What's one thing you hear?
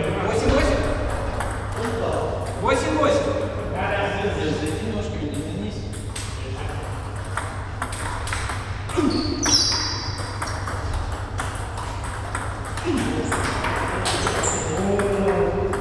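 Table tennis balls click rapidly off paddles and tables in a large echoing hall.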